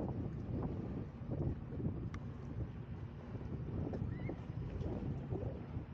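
Wind buffets loudly outdoors in steady gusts.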